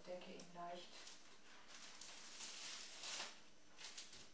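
A cloth sheet rustles as it is lifted and laid down.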